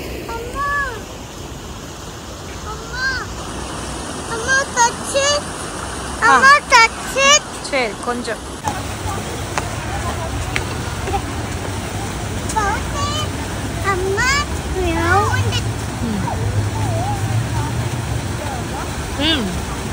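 A fountain splashes steadily nearby.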